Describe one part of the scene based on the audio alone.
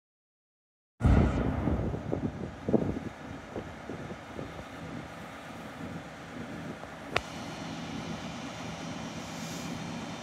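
A diesel locomotive engine hums steadily while idling.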